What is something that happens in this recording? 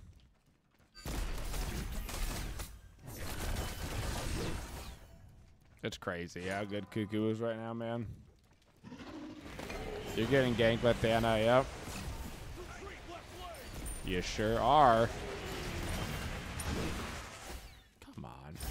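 Magic spells blast and whoosh in a video game.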